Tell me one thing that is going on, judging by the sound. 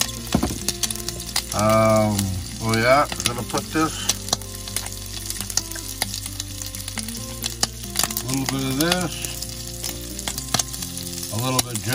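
Sausage slices sizzle and crackle in a hot pan.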